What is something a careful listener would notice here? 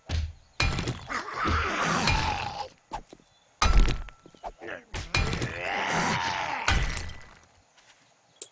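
Rock crumbles and grinds after each strike.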